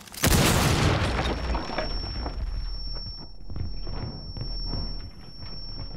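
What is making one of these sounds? A high steady ringing tone follows the blast.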